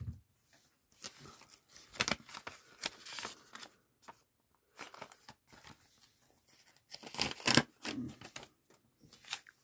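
Paper rustles and crinkles as an envelope is handled.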